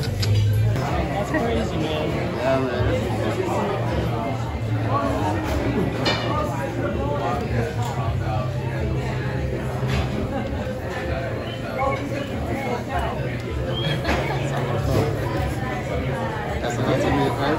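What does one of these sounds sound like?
A crowd of diners chatters nearby in a busy room.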